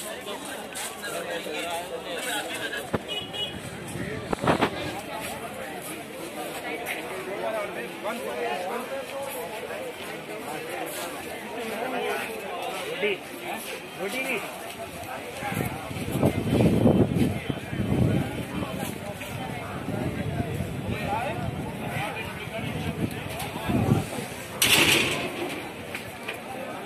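A busy outdoor crowd chatters and murmurs all around.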